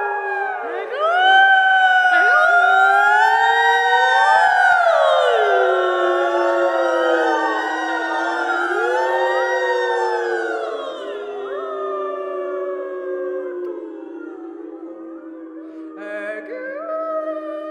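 A young woman sings slowly and softly into a microphone.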